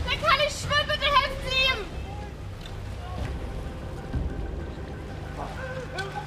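A bird splashes and flaps in the water.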